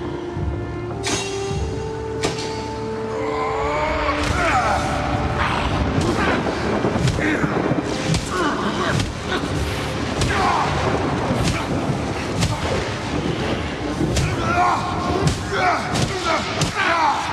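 Heavy blows crash and thud.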